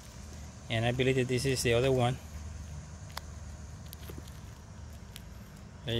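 Gloved fingers scrape and crumble through loose soil.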